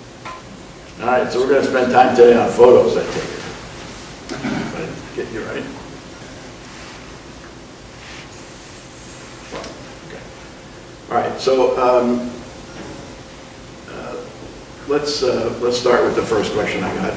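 An elderly man speaks calmly over an online call, in short bursts.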